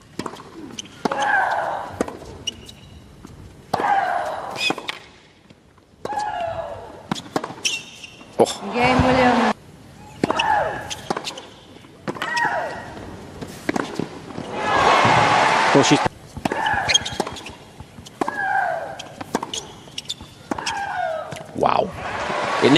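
A young woman grunts loudly as she hits a tennis ball.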